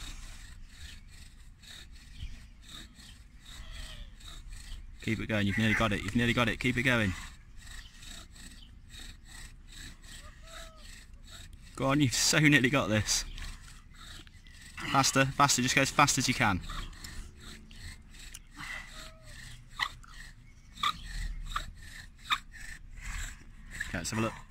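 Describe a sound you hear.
A wooden stick squeaks and rubs as it is twisted back and forth.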